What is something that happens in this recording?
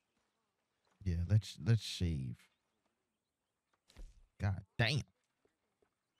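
A young man talks loudly and excitedly close to a microphone.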